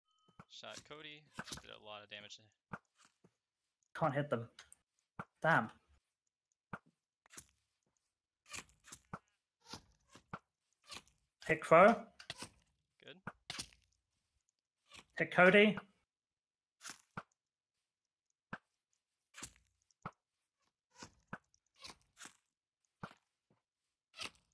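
Footsteps crunch softly on grass.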